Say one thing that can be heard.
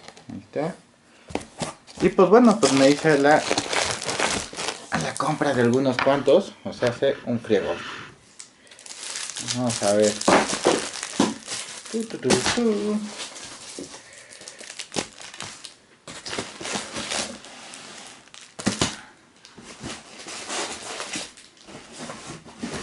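Cardboard and plastic cases rustle and clack as they are handled.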